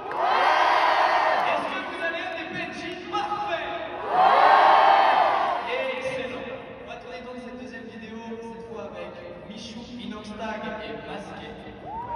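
A crowd cheers and screams.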